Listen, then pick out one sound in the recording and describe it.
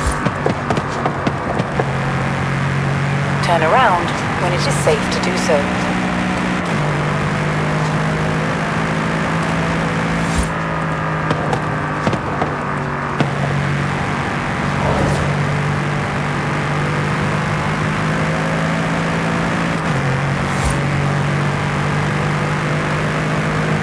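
Tyres hum on asphalt.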